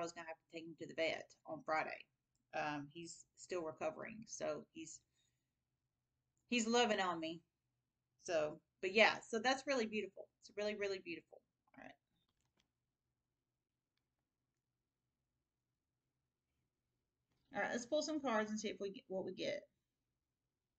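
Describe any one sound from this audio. A woman talks calmly and closely into a microphone, with pauses.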